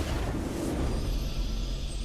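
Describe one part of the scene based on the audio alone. A triumphant fanfare plays.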